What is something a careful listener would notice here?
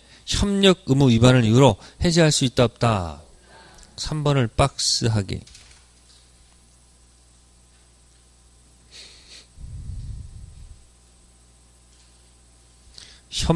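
A man speaks with animation through a microphone, pausing often.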